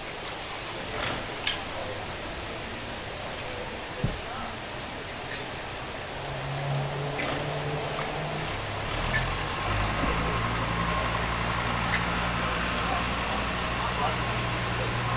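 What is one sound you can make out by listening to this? Metal taps and clicks against stone.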